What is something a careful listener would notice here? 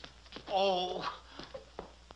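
An elderly man shouts out loudly.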